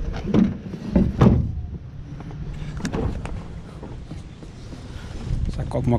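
A padded chair thumps and scrapes against a metal truck bed.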